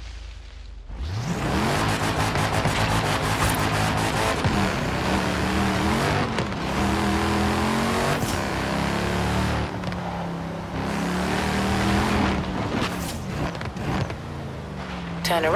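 A car engine revs hard and rises in pitch as the car accelerates.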